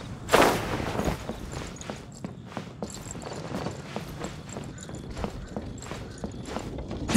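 Footsteps patter quickly across roof tiles.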